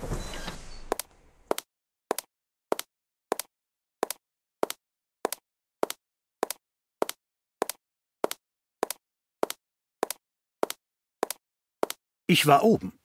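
Footsteps tap steadily across a hard wooden floor.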